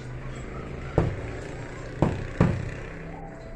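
Dishes knock on a table.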